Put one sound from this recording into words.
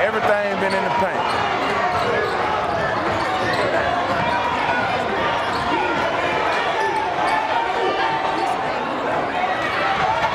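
A crowd cheers and chatters in an echoing gym.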